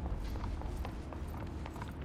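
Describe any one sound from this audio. Footsteps thud quickly on a carpeted floor.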